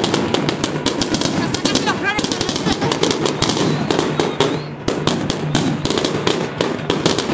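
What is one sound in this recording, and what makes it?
Fireworks crackle and bang rapidly overhead outdoors.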